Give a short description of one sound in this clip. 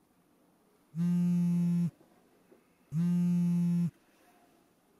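A phone sounds two long electronic tones.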